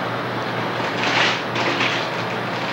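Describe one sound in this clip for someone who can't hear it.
Newspaper pages rustle and crinkle close by.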